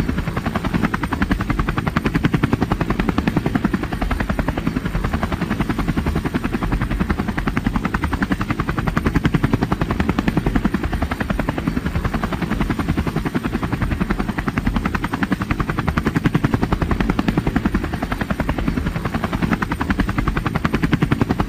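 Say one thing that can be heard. A helicopter's rotor chops rapidly and steadily.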